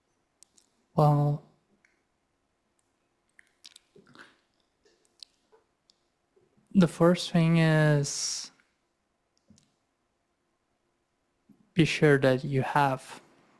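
A man speaks calmly into a microphone over an online call, in short bursts.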